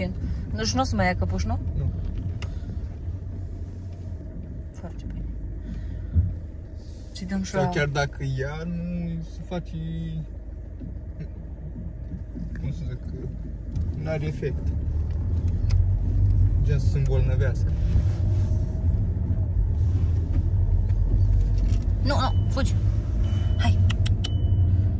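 A car engine rumbles low and steady.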